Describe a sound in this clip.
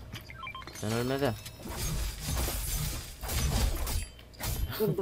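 A pickaxe swings and strikes with sharp whooshes and thuds.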